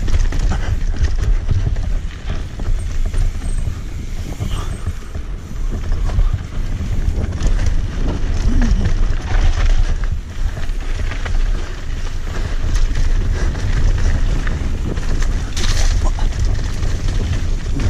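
A bicycle frame and chain clatter over bumps.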